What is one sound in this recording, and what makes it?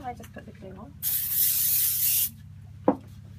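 A spray can hisses in a short burst.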